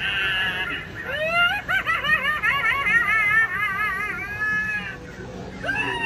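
An animatronic scarecrow cackles in a high, warbling voice.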